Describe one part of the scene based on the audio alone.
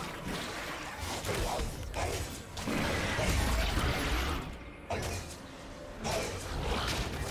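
Fantasy battle effects crackle and boom as a giant monster is attacked.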